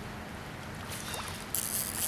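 A fish splashes at the surface of the water.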